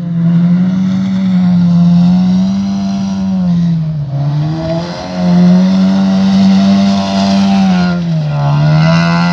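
Tyres churn through thick mud.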